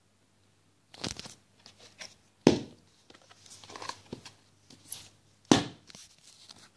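A plastic coin album crinkles and knocks as it is handled.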